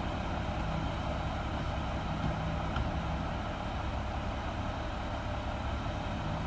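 A garbage truck engine idles with a loud, steady rumble.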